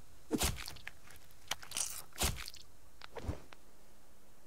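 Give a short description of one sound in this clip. An axe hacks into flesh with sharp, wet thuds.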